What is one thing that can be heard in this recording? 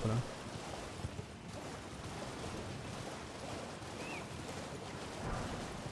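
Water splashes as a horse gallops through a shallow stream.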